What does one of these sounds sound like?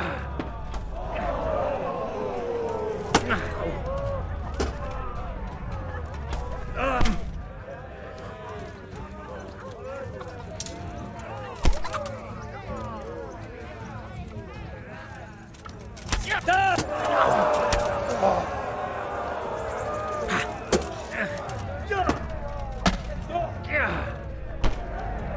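Blows thud against a wooden shield.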